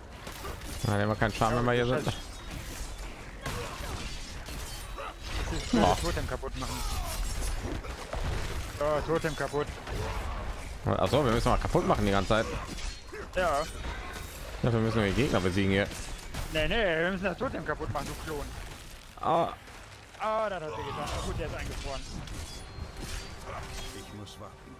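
Weapons strike and clash in rapid combat.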